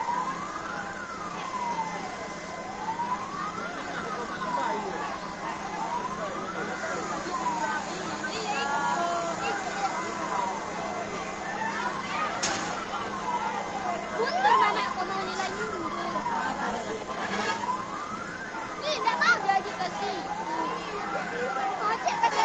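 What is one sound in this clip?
A crowd of men and women talk and shout excitedly nearby.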